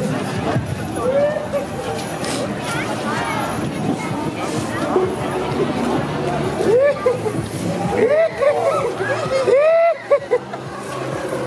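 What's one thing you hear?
Masked figures whoop and shriek in high voices close by.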